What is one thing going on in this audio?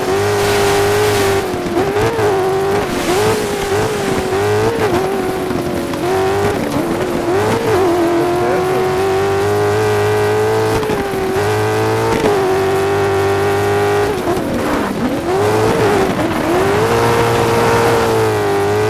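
A racing engine roars loudly, rising and falling in pitch as it revs and shifts gears.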